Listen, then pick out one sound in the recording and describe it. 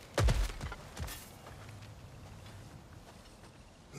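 Leaves and branches rustle as a figure squeezes between roots.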